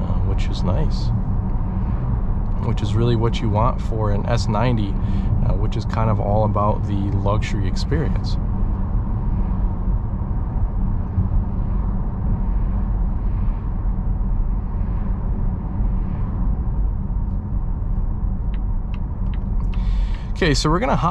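A car's tyres rumble steadily on a paved road.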